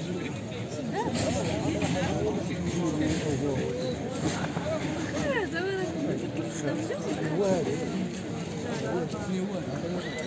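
A crowd of men talks and calls out close by, outdoors.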